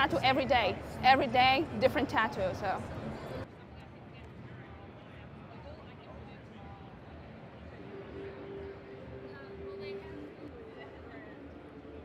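A crowd murmurs in a busy hall.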